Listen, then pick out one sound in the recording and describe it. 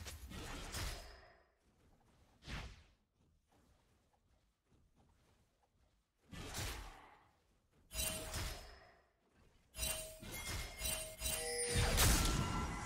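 Spell effects whoosh and burst during a fight.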